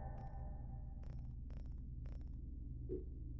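Short soft clicks tick as a selection steps through a menu list.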